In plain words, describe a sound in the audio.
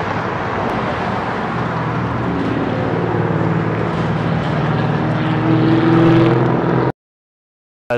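A bus engine rumbles as a bus idles and pulls away on a street.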